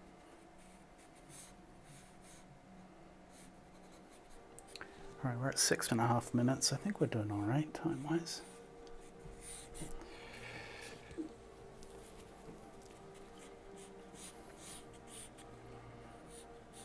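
A pencil scratches and scrapes on paper.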